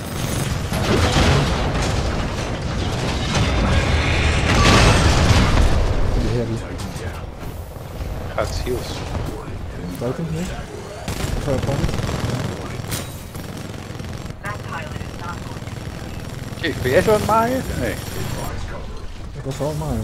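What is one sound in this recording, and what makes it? Heavy machine guns fire in rapid bursts.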